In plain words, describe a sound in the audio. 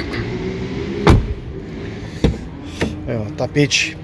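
A car door latch clicks and the door swings open.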